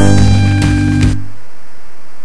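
Electronic video game music plays loudly and cuts off abruptly.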